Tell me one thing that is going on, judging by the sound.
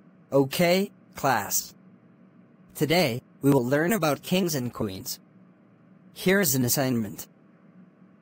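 A man speaks calmly, like a teacher addressing a class.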